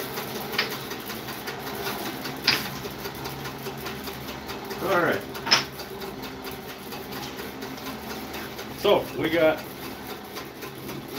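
A band saw motor hums steadily.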